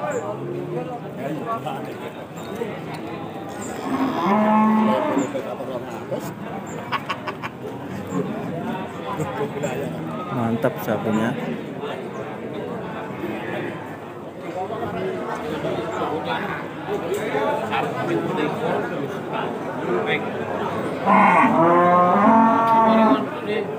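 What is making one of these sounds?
A crowd of men chatter nearby.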